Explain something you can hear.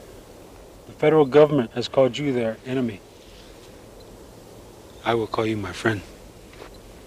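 A man speaks calmly and softly, close by.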